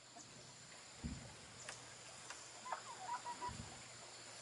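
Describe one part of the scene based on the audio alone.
Bamboo poles creak and thump under a man's weight.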